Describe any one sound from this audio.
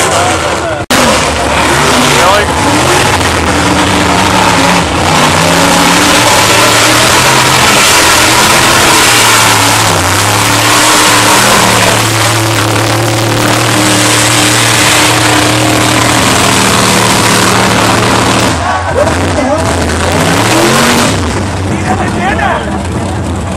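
A truck engine roars loudly and revs.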